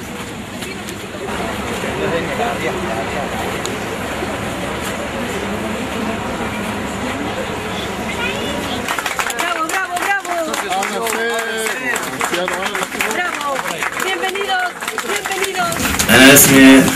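A crowd of people chatters and calls out outdoors.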